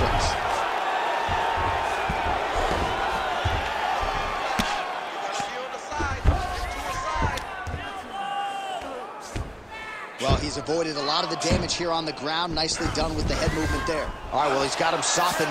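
Punches thud in quick succession.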